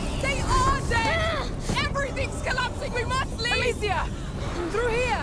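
A young woman shouts urgently.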